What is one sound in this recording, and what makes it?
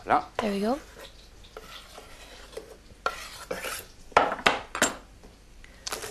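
Chopped food slides off a board into a metal pan.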